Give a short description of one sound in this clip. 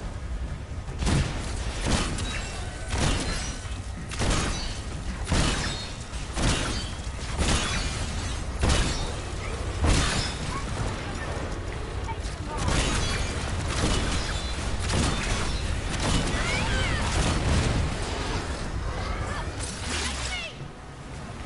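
A sword slashes and clangs against metal in quick repeated strikes.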